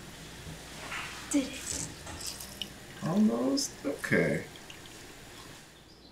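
Juice drips and splashes into a glass as an orange is squeezed.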